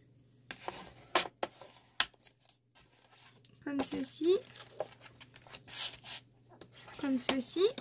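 A bone folder scrapes along paper.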